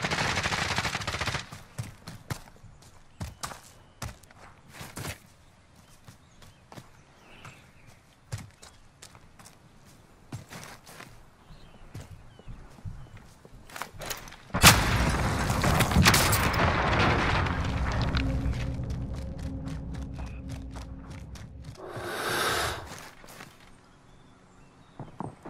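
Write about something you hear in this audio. Footsteps crunch quickly over the ground.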